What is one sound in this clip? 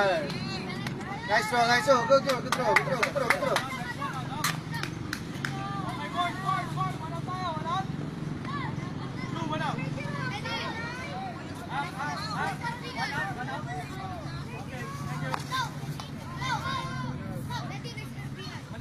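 Young boys shout and call out nearby, outdoors.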